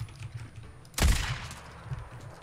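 A single gunshot cracks and echoes.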